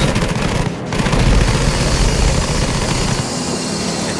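An explosion booms nearby.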